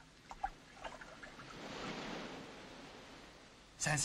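Water splashes as a man sits down in the shallows.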